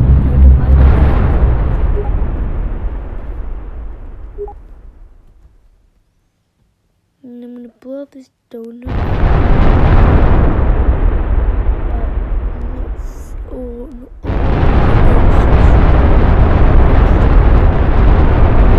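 Huge explosions rumble and roar, then slowly fade.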